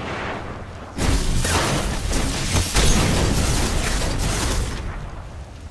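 A loud energy blast crackles and booms.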